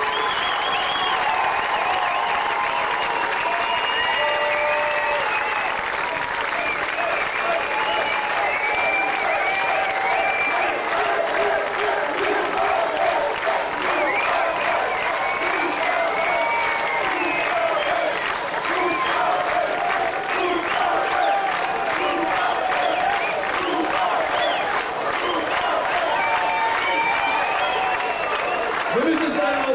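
A large brass band plays a lively tune in a big echoing hall.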